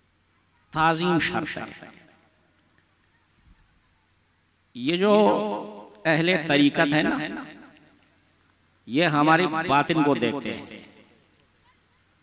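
A man chants melodiously through a microphone and loudspeakers, in phrases with pauses between them.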